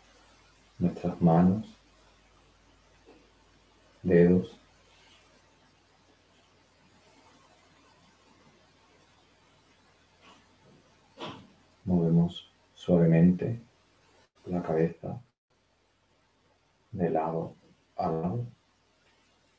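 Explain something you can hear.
A young man speaks calmly in short phrases with pauses, heard over an online call.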